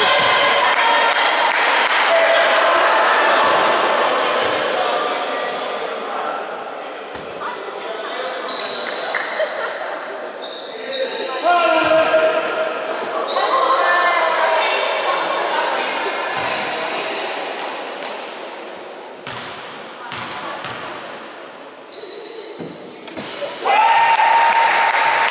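Players and spectators talk and call out in a large echoing gym.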